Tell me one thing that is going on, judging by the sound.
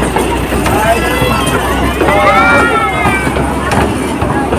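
Children chatter and call out close by.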